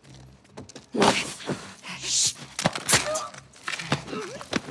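A sudden struggle breaks out with loud thrashing and thuds.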